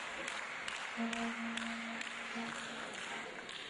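A reed pipe plays a sustained, mellow melody.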